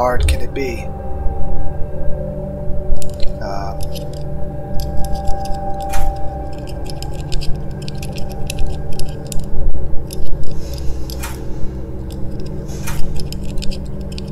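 A metal pin scrapes and clicks inside a lock.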